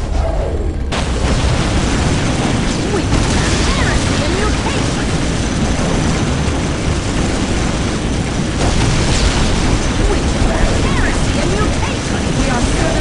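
Guns fire in rapid bursts amid a loud battle.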